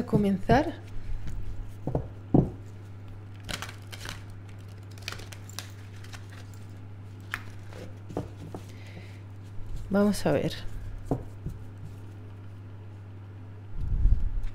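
Playing cards shuffle and slap softly together.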